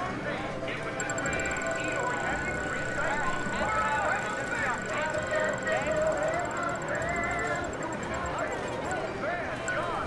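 A prize wheel spins with rapid clicking that slows down.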